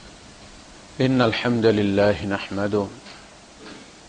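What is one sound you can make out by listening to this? A man speaks into a microphone in a slow, drawn-out, chanting voice.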